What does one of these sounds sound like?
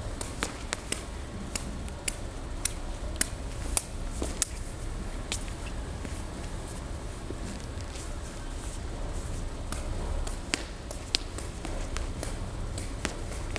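Shoes tap and scuff on a hard floor in a large echoing hall.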